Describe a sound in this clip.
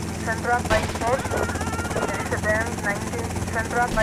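A helicopter's rotor whirs and drones overhead.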